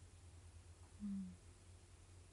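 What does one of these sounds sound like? A young woman hums briefly with her lips closed.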